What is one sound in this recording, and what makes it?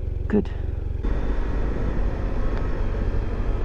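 A motorcycle engine rumbles while riding along a road.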